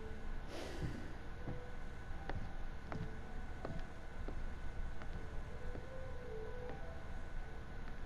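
Footsteps sound slowly and softly.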